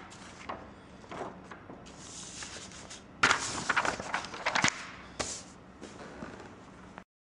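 Sheets of paper rustle and crinkle as they are handled.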